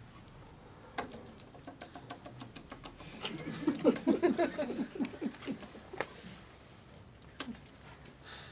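Playing cards tap and shuffle on a table.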